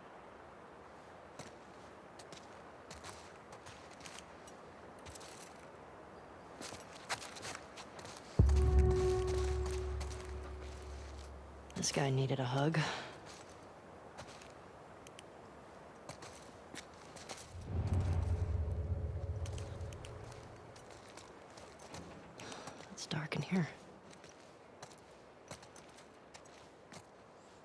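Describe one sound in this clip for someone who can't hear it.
Footsteps fall softly on a hard floor.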